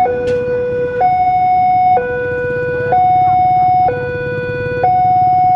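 A level crossing signal dings in two alternating tones.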